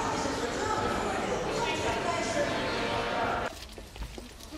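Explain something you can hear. Many voices chatter and echo in a large sports hall.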